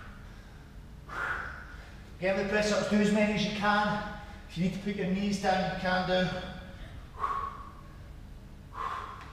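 A man exhales hard.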